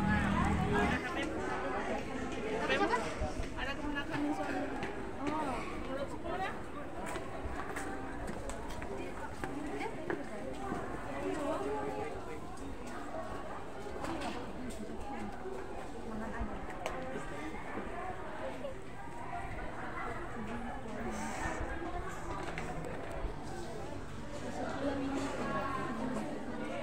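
Young people chat with each other close by, outdoors.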